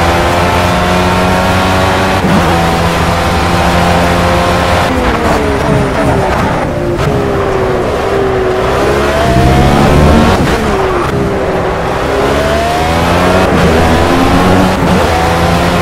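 A racing car engine roars, its pitch climbing through the gears and dropping sharply under braking.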